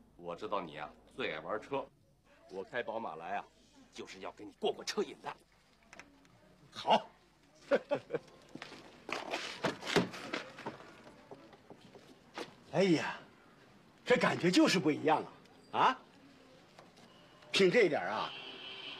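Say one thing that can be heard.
A middle-aged man talks calmly and cheerfully nearby.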